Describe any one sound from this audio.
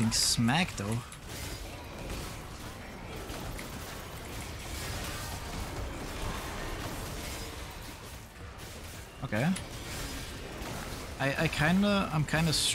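Game spell effects crackle and whoosh.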